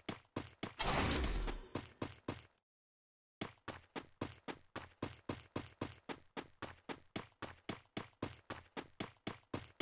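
Quick footsteps thud steadily as a game character runs.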